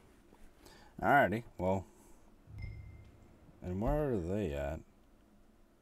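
A young man talks briefly into a microphone, with animation.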